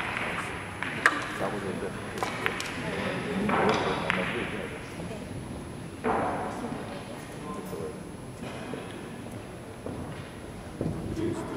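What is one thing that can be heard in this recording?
Distant voices murmur in a large echoing hall.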